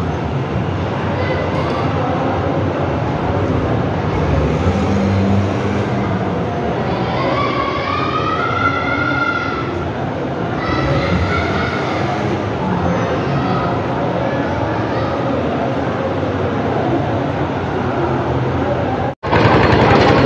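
A man chants a prayer in a drawn-out, melodic voice.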